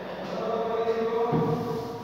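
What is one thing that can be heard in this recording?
A duster rubs across a chalkboard.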